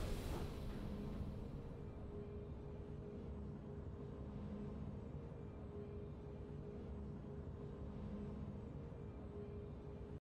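A low, steady game music drone plays.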